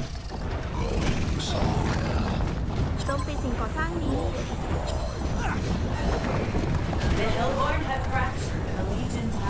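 Magic blasts and spell effects crackle and boom in a fantasy battle.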